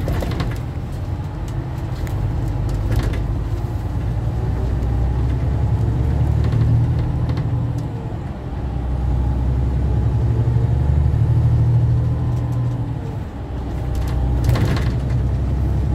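The bus rattles and clicks over bumps.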